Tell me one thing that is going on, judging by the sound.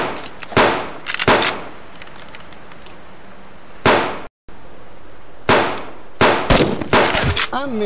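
A rifle's metal action clicks and clacks as it is reloaded.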